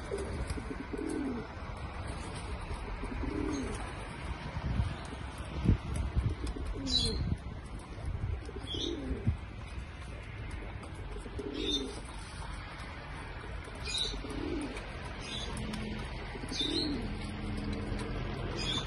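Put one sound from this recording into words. Pigeons peck grain from a metal feeder with light taps.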